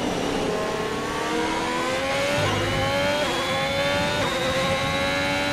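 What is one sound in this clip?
A racing car engine revs higher and higher, shifting up through the gears.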